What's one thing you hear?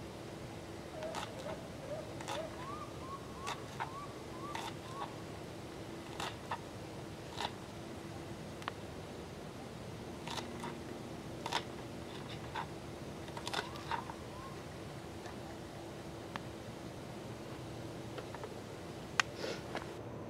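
A knife chops vegetables on a wooden cutting board with sharp, uneven taps.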